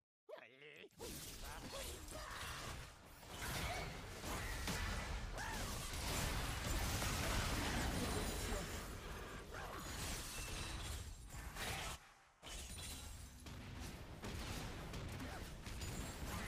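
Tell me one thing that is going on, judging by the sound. Spells and blasts crackle and whoosh in a fast-paced game fight.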